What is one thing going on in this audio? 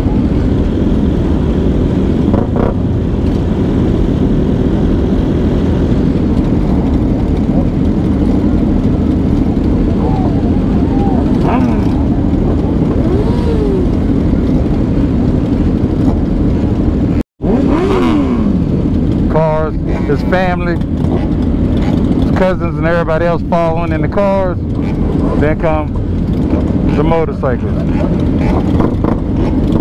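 Many motorcycle engines rumble and idle close by.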